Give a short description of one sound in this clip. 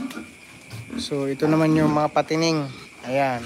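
A pig squeals loudly in long shrill cries.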